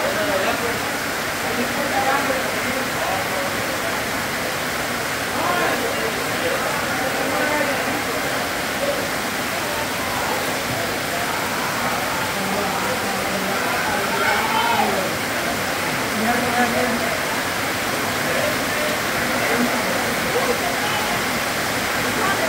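Heavy rain pours down and drums on a metal roof.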